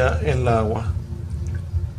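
Liquid trickles from a plastic bottle onto a sheet of glass.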